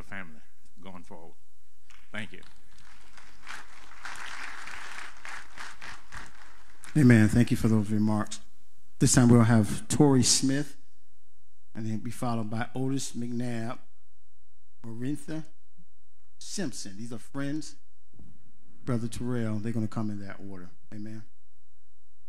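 A man speaks slowly and solemnly into a microphone, his voice ringing through a large hall over loudspeakers.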